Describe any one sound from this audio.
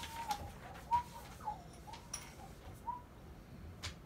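A baby coos softly close by.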